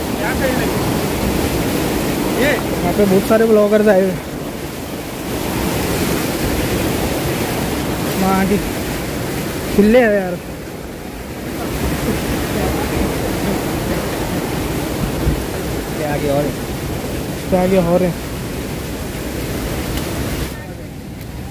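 A river rushes and splashes over rocks close by.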